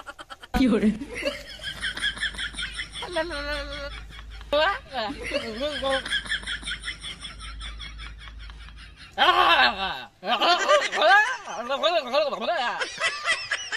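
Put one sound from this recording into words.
A teenage boy talks excitedly and laughs close by.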